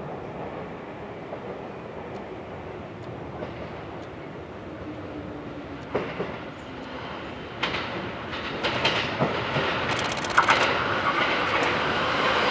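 An electric commuter train approaches and passes through without stopping.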